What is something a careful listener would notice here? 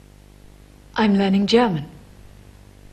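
A young woman speaks with animation, close by.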